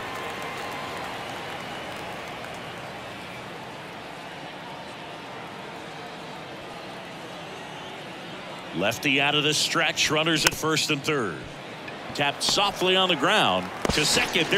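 A stadium crowd murmurs steadily.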